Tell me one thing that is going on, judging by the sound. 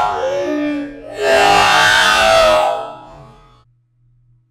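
A young man shouts loudly into a microphone close by.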